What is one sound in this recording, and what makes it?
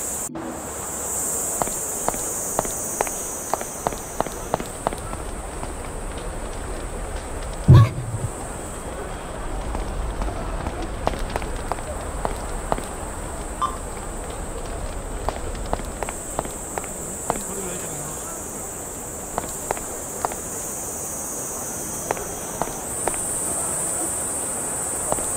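Footsteps tap steadily on hard pavement.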